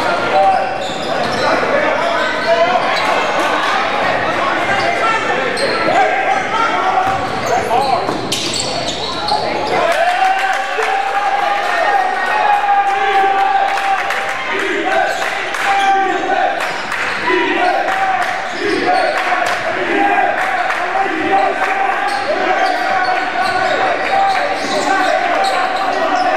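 A crowd murmurs and cheers in a large echoing gym.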